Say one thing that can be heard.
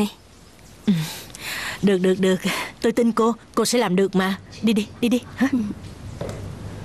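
A woman speaks cheerfully and calmly nearby.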